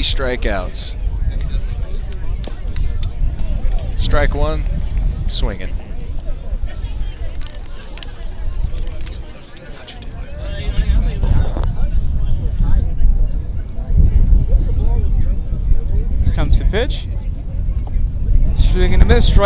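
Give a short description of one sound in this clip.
A crowd of spectators chatters and calls out outdoors.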